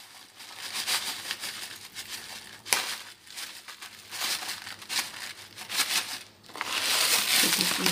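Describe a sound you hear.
Crunchy granola rattles and patters as it pours from a bag into a bowl.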